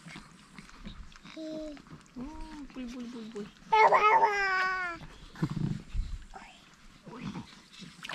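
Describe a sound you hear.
Water splashes lightly as small hands play in it.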